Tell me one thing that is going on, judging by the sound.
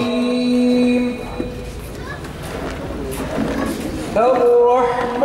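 An elderly man speaks through a microphone.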